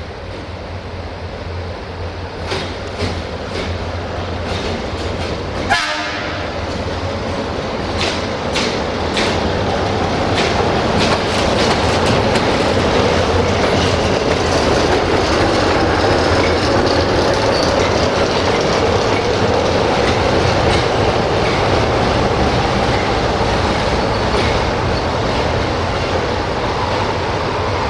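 A locomotive engine rumbles steadily as it approaches and passes close by.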